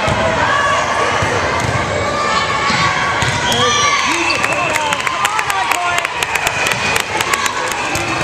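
A volleyball thumps off a player's arms.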